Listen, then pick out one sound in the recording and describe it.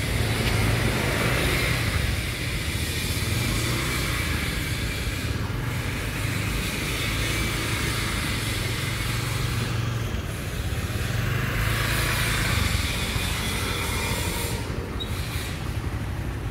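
A scooter engine idles with a low, steady hum.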